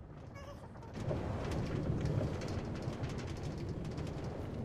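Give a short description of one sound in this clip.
A game minecart rolls along rails with a rumbling sound.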